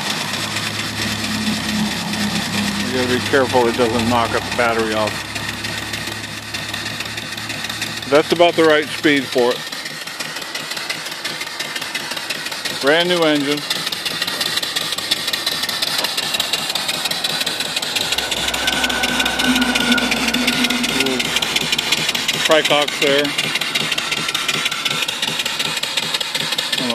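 Steam hisses loudly and steadily from a pipe.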